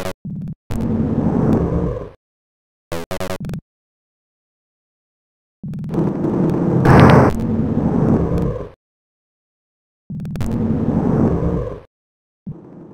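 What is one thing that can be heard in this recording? A heavy sliding door rumbles open.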